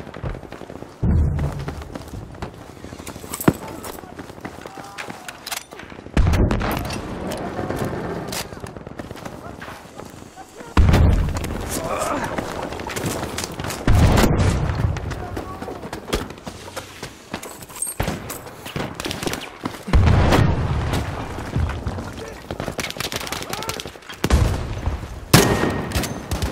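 Grenades explode with loud, deep booms.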